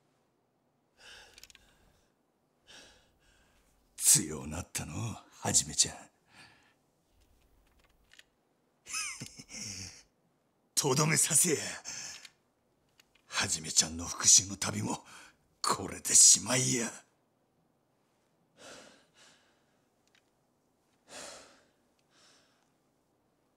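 A younger man grunts and growls with strain.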